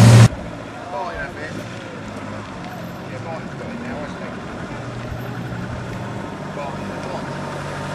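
A small car engine rumbles as the car creeps forward.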